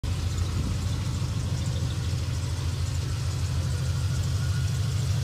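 A car engine idles with a deep, steady, lumpy rumble close by.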